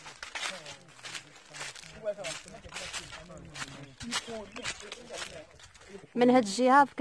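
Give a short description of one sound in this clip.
Footsteps crunch through dry leaves at a steady walking pace.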